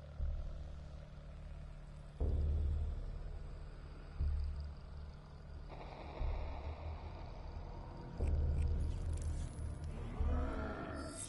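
Deep, booming music pulses in slow, even beats.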